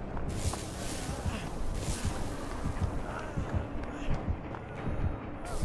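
Footsteps thud on a hard floor at a quick, even pace.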